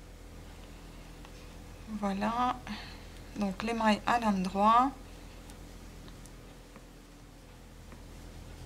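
Wooden knitting needles click softly against each other.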